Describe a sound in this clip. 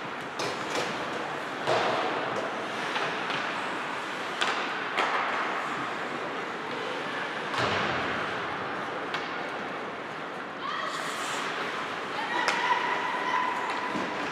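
Skates scrape and hiss across the ice in a large echoing arena.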